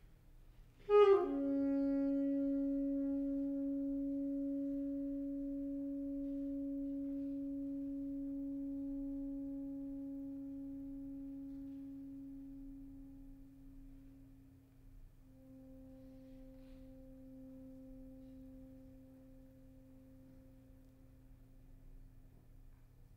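A saxophone holds a long, low note that slowly fades.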